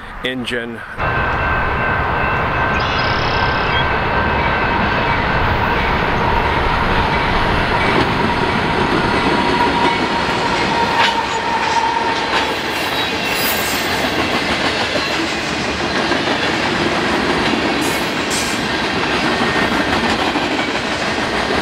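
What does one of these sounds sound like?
A freight train rumbles loudly past on the tracks.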